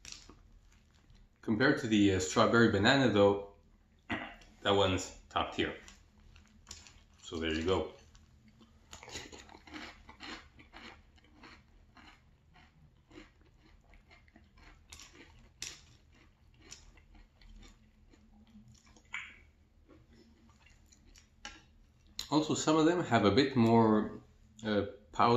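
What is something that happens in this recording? A spoon clinks and scrapes in a bowl of cereal.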